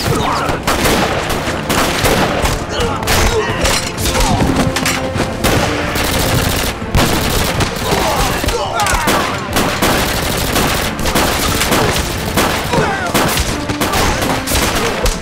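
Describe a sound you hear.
Gunshots crack rapidly again and again.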